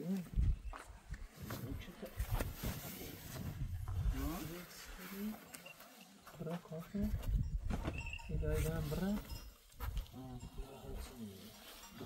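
Thick blankets flap and rustle as they are spread out.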